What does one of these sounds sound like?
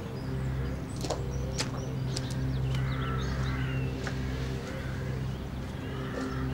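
Birds chirp nearby.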